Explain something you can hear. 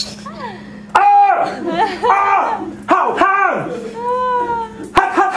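A young man shouts loudly and excitedly into a microphone.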